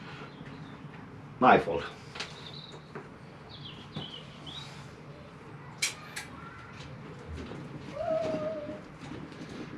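Small metal tools click and snip.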